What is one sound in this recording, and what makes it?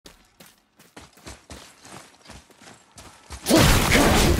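Heavy footsteps thud steadily on stone.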